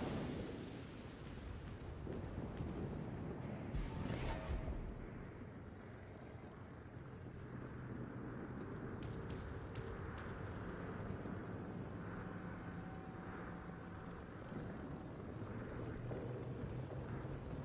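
A warship's engines rumble low and steady.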